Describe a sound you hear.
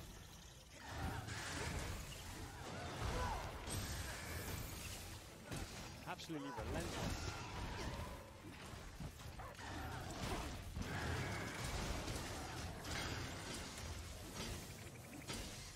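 Heavy thuds and metallic clashes of a video game battle sound out.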